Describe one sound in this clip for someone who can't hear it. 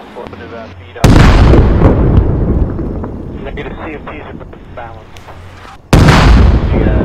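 A heavy explosion booms and rumbles.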